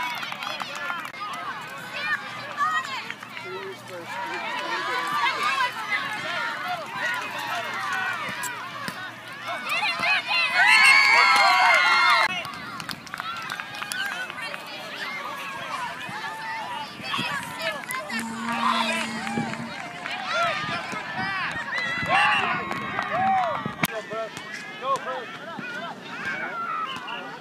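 Adults in a crowd cheer and call out nearby.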